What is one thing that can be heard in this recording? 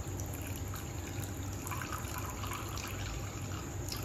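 Milk pours and splashes into a bowl.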